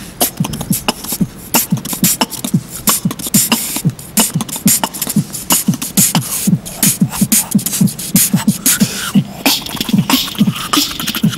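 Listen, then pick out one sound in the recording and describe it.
Young men beatbox close by, making fast, punchy kick drum and snare sounds.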